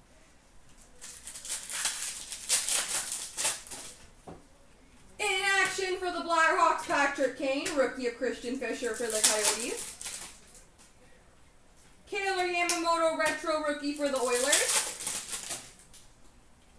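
Plastic card sleeves rustle and crinkle as hands handle them.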